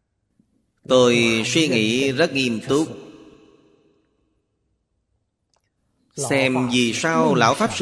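An elderly man speaks calmly and expressively into a close microphone.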